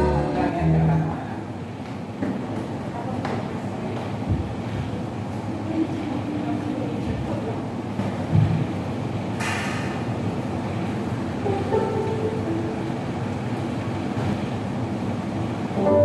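A keyboard plays.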